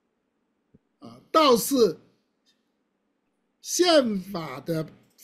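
An elderly man speaks emphatically over an online call.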